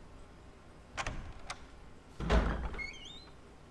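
A heavy wooden door creaks open.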